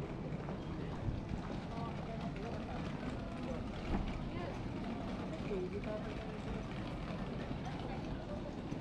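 People talk faintly in the distance.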